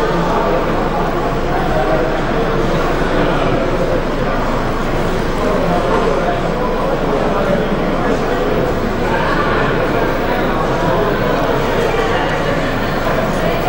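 A model train rolls along its track with a faint electric whir.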